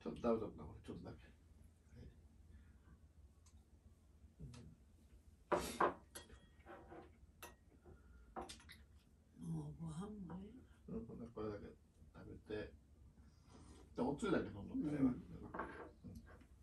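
A man talks calmly and softly close by.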